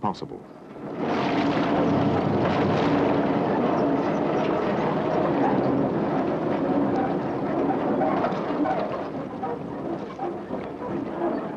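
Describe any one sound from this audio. Truck tyres churn and splash through deep mud.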